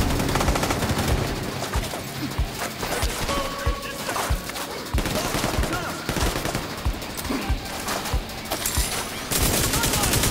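Gunfire crackles in scattered bursts.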